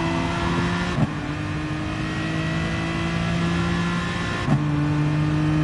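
A gearbox snaps sharply through two quick gear changes.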